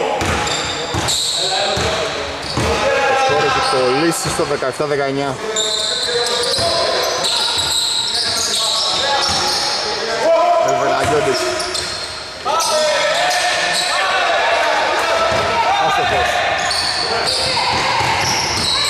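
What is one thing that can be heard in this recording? Young men shout to each other across the hall.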